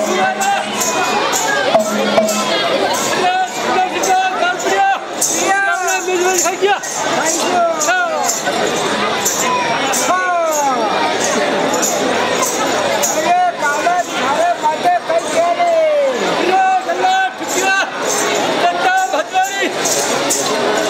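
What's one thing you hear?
A large crowd of men, women and children chatters and calls out outdoors.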